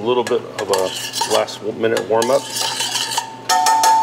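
Metal tongs clink and scrape against a metal bowl.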